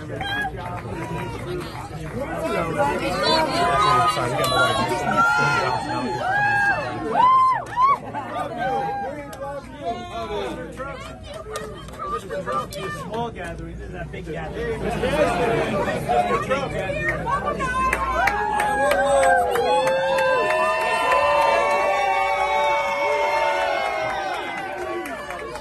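A dense crowd of men and women chatters and calls out loudly all around, close by.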